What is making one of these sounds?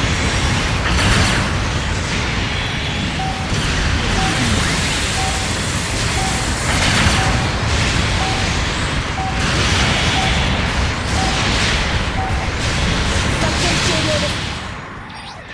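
Laser beams fire with sharp bursts.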